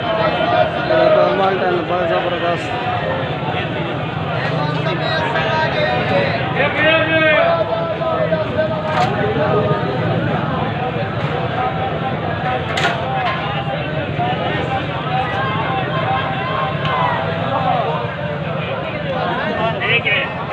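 Men's voices chatter nearby and in the distance outdoors.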